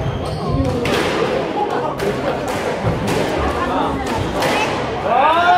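A squash ball smacks against racquets and walls in an echoing court.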